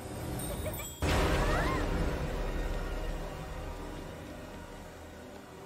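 A magical whoosh swells as doors swing open.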